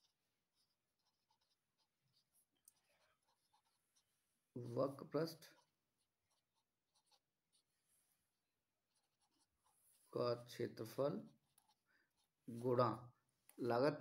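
A felt-tip marker writes on paper.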